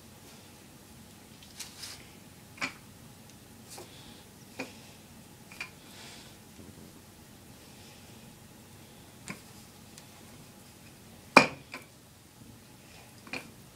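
A wooden rolling pin rolls over dough, knocking now and then on the counter.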